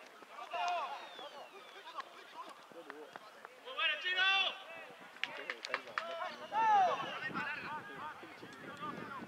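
Young men shout to each other outdoors across an open field.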